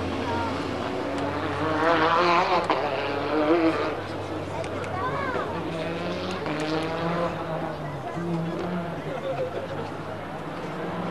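Racing car engines roar and rev at high pitch, rising and falling as the cars speed past.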